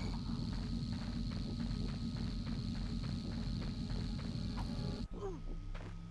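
A large machine hums and rumbles steadily.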